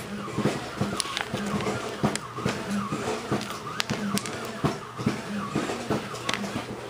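A cat crunches dry food up close.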